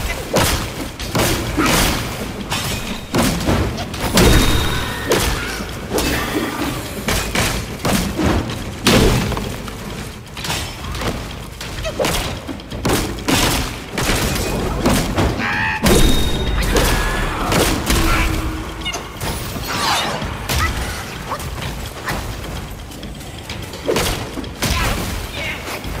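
A staff swishes and thuds in heavy combat blows.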